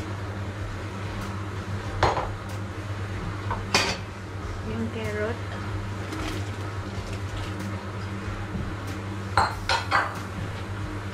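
Food is tipped from a bowl into a simmering pot.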